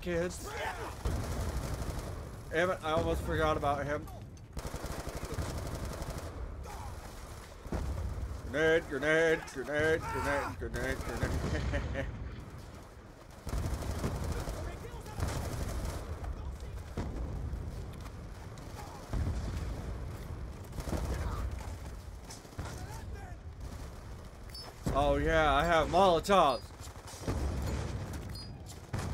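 Rifle shots ring out in rapid bursts.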